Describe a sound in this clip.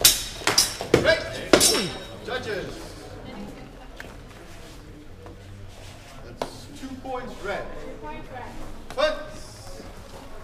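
Fencers shout loudly during the bout.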